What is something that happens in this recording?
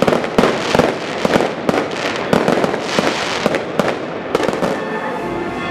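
Fireworks crackle and bang loudly overhead.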